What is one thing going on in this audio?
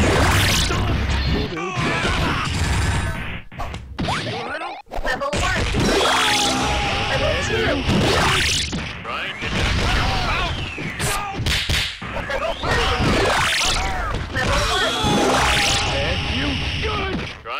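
An energy blast bursts with a loud whoosh.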